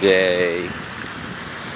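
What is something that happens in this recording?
Ducks quack on the water.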